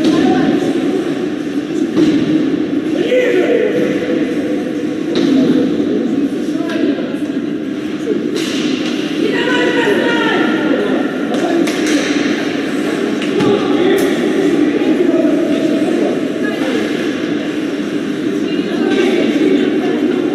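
Skates scrape across the ice.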